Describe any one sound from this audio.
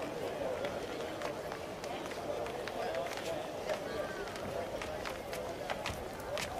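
Footsteps tap on stone steps.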